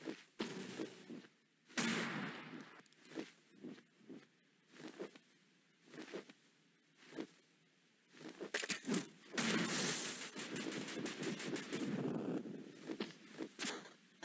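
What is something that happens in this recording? Wings flap in quick bursts.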